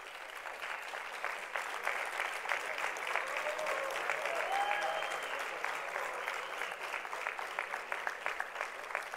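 A large crowd applauds and claps steadily in a big hall.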